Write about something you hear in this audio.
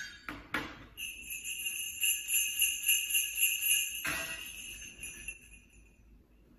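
Sleigh bells jingle in a steady rhythm.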